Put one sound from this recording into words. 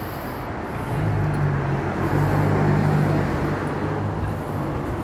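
A car passes close by with a rising and fading whoosh.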